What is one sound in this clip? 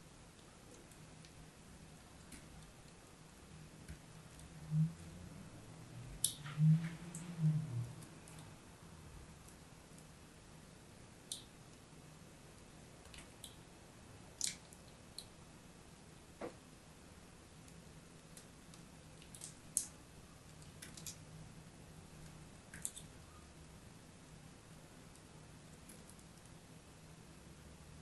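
Crumbled chalk pieces rustle and crackle between fingers.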